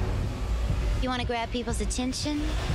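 A woman sings in a clear voice.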